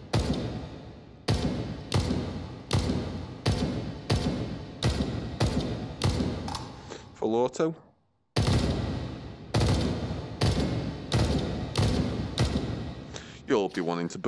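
A rifle fires rapid repeated shots, each ringing out in a reverberant space.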